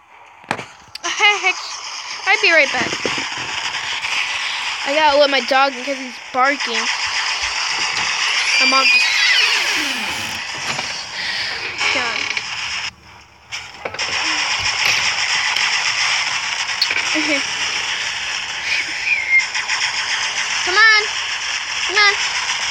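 Robots fire guns and explosions boom in a game's battle.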